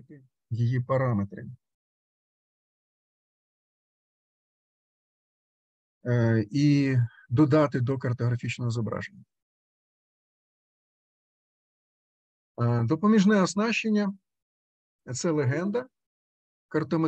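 A man speaks calmly through a microphone, as if on an online call, in short bursts with pauses.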